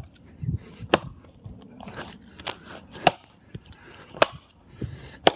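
An axe chops into wood with sharp knocks.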